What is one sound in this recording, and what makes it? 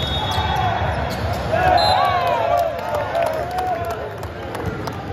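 Young men shout and cheer on a court.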